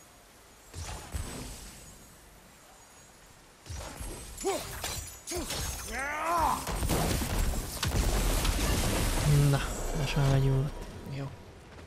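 An axe strikes and crashes in heavy blows.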